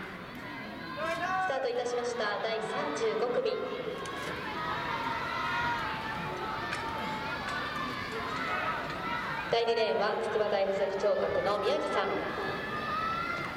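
A crowd of spectators shouts and cheers from a distance.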